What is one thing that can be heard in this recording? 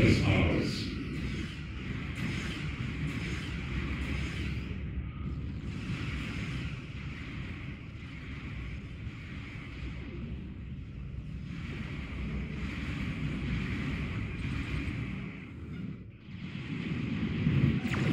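Laser weapons fire and zap repeatedly.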